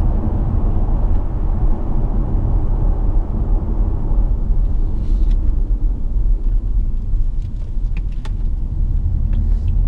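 A car engine hums low and steady from inside the cabin.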